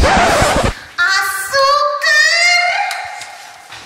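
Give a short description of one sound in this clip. A young woman speaks with animation in a sliding, sing-song voice close by.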